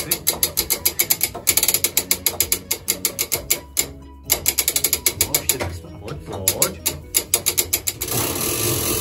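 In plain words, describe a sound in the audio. A clock mechanism ticks and clatters rapidly close by.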